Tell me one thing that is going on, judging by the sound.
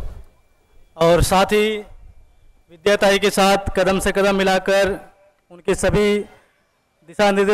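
A large crowd chants loudly in unison.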